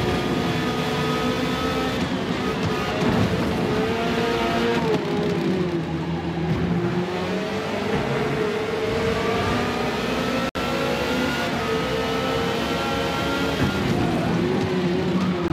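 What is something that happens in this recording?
A racing car engine roars, its pitch rising and falling as it shifts gears.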